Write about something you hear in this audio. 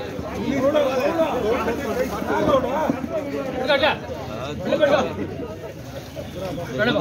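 Several men chatter in the background.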